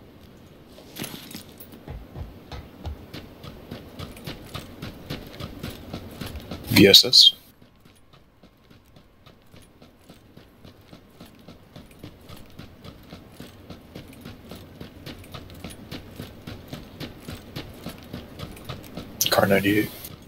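Footsteps run quickly and steadily on hard ground.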